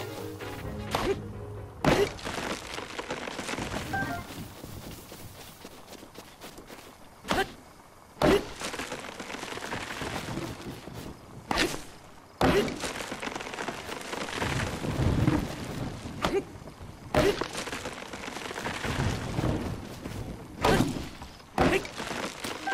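An axe chops into a tree trunk with sharp thuds.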